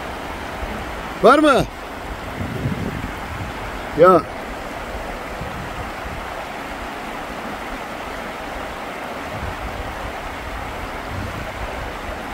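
A fast river rushes and splashes over rocks.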